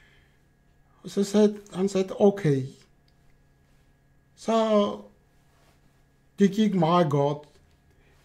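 An elderly man speaks slowly and earnestly, close to a microphone, with pauses.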